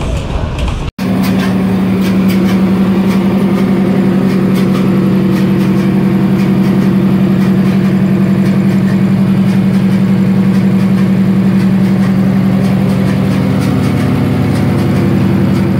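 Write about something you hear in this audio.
A big diesel engine runs with a steady, deep drone.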